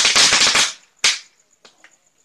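A firecracker bangs sharply.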